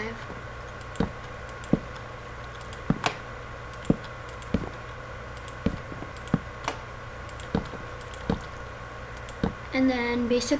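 Wooden blocks are placed with short, dull knocks, one after another.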